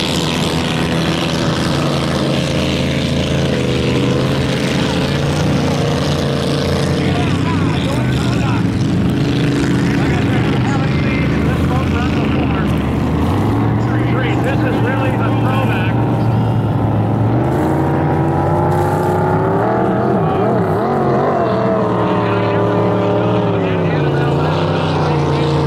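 Powerful racing boat engines roar steadily across the water, rising and falling in pitch.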